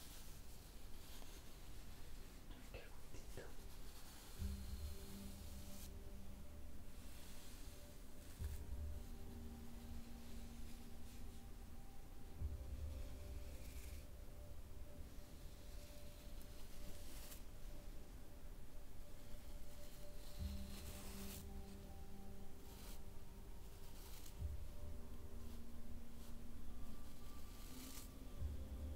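A bristle brush sweeps softly over skin and hair.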